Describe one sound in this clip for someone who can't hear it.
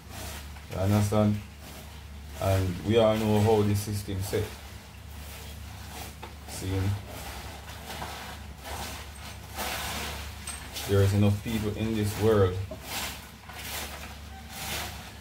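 Hands rub and squelch against wet raw fish.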